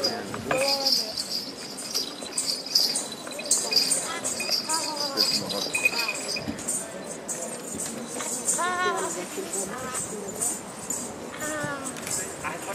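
A hand drum is beaten.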